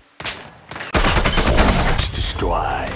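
A rifle fires a single loud, sharp shot.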